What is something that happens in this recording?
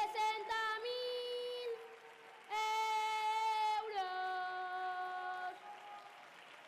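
A young girl sings in a loud, drawn-out chant through a microphone.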